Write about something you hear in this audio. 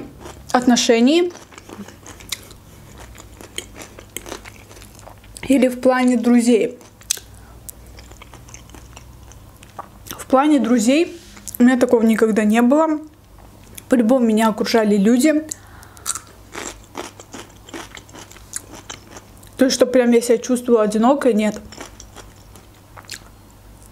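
A young woman chews food with wet, smacking mouth sounds.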